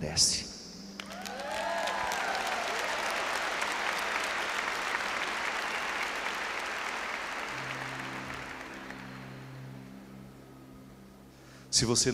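A large crowd applauds loudly, then the applause slowly fades.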